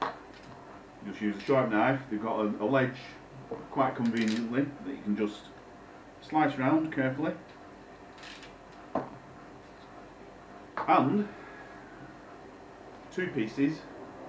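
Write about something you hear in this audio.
A man talks casually and close by.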